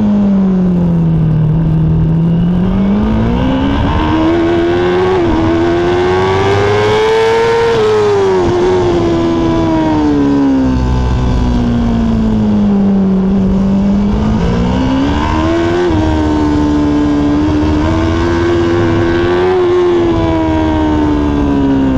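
Wind rushes hard past the rider.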